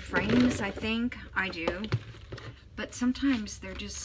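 A plastic box is set down with a light knock.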